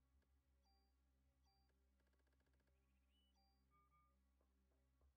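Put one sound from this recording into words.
Short electronic beeps chime from a game menu.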